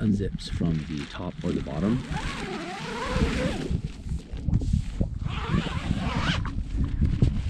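Tent fabric rustles and flaps.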